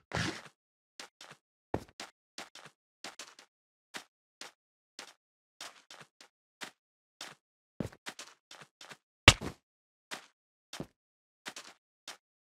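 Footsteps crunch on sand at a steady walking pace.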